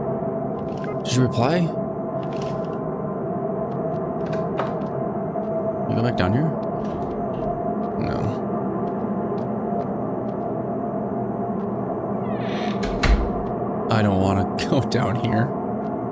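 A man talks now and then, close to a microphone.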